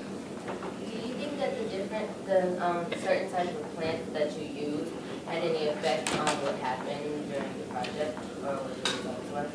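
A teenage girl speaks calmly into a nearby microphone, in a room with some echo.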